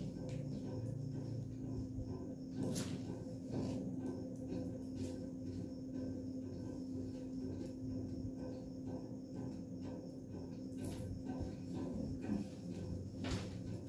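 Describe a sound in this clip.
Silk fabric rustles as it is unfolded and shaken.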